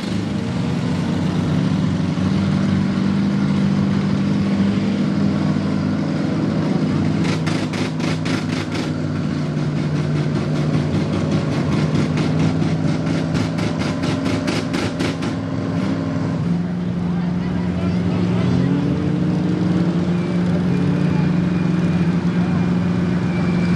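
Tyres spin and splash through mud and water.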